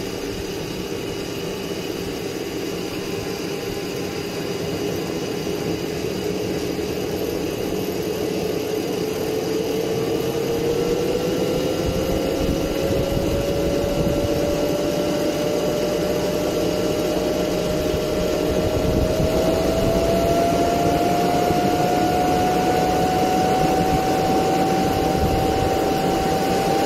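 A small jet engine roars steadily with a whine that slowly rises in pitch.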